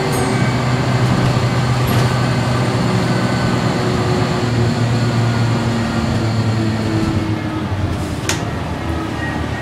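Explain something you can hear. A bus engine hums and rumbles steadily from inside the cabin.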